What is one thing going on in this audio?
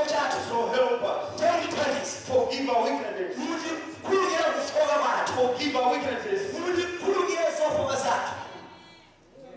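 A man preaches loudly and with animation through a microphone in an echoing hall.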